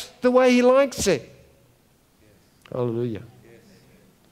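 An elderly man speaks slowly and expressively through a microphone.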